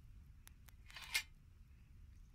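A metal blade clinks softly.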